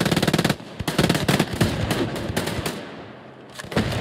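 A gun is reloaded with metallic clicks.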